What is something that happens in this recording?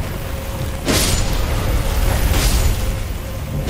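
Magic sparks crackle and burst.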